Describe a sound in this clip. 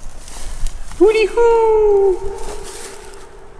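A man shouts into a hollow metal tank, his voice echoing.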